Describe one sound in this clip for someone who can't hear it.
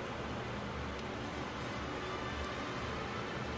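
A game menu gives short soft clicks as selections change.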